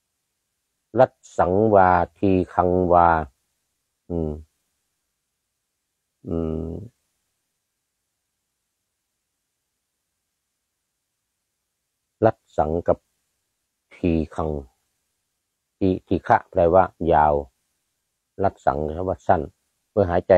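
An elderly man speaks calmly and slowly close to a microphone, with long pauses.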